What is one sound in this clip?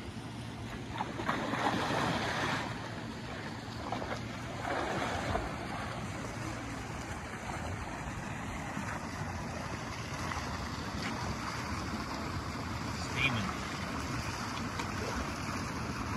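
Water splashes as a man jumps in and wades.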